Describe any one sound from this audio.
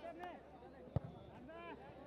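A football is struck hard with a single thud.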